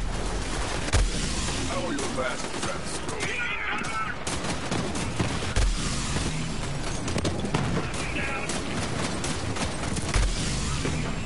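Explosions from a video game boom.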